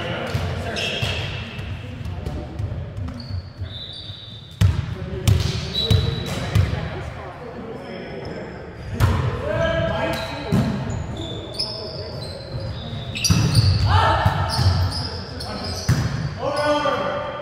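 Shoes squeak sharply on a gym floor.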